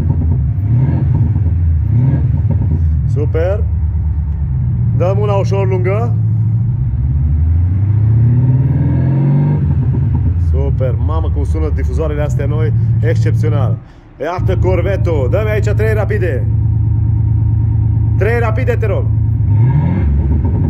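A car exhaust rumbles deeply and steadily.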